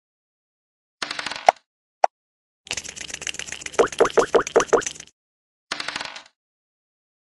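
A die rattles as it rolls across a board.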